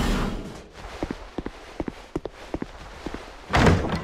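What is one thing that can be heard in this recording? Armoured footsteps run quickly over stone.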